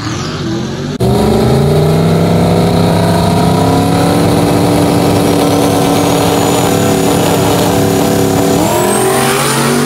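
A race car's engine idles with a loud, lumpy rumble close by.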